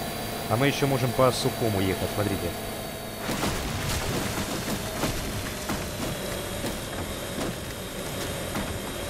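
Water sprays and splashes under a hovercraft.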